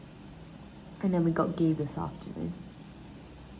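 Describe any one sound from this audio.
A young woman speaks briefly and casually, close by.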